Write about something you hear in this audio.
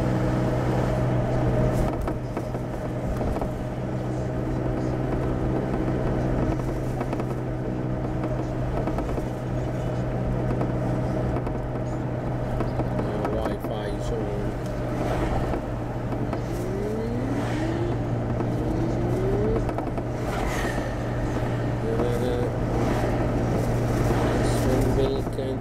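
Tyres roll on the road beneath the car.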